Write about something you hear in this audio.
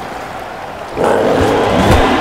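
A stadium crowd roars loudly.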